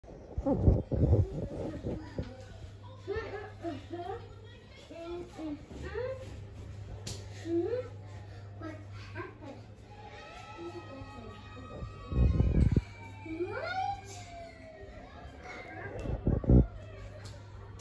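A television plays music and voices nearby.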